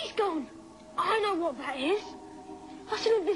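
Another young boy speaks quickly with animation.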